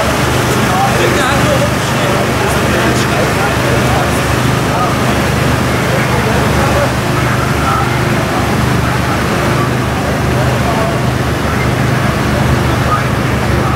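A fire engine's diesel engine idles steadily nearby.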